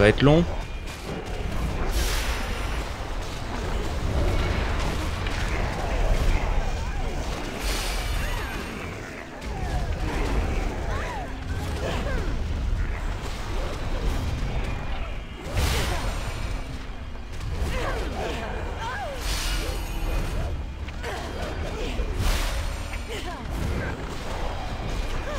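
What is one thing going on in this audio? Spell effects and combat hits crash and whoosh in a game battle.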